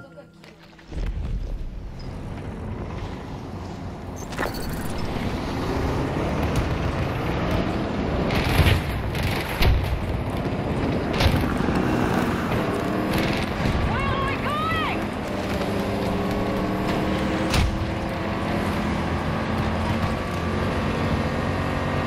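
A heavy armoured vehicle engine rumbles steadily.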